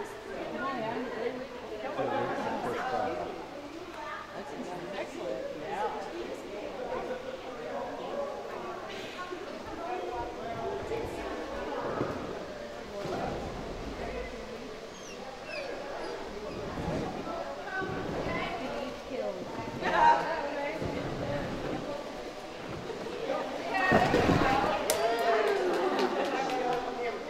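A woman calls out to a dog with animation in a large echoing hall.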